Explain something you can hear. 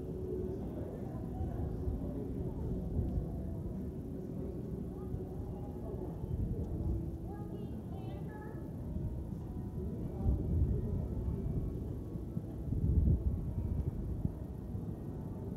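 A horse trots on soft sand with muffled hoofbeats.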